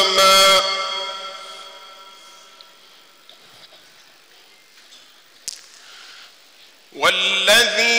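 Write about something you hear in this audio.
A man chants a recitation through a microphone, echoing in a large hall.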